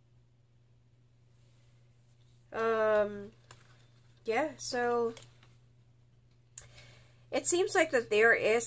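Playing cards slide and tap softly as they are gathered up.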